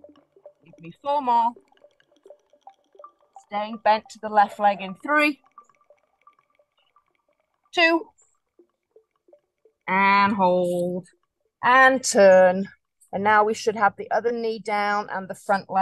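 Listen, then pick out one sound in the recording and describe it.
A woman speaks calmly, giving instructions through an online call.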